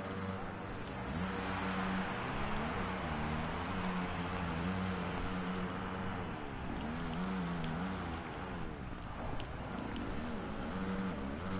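Motorbike engines roar as the bikes race.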